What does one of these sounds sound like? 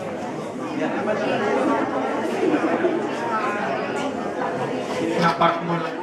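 Young women laugh excitedly close by.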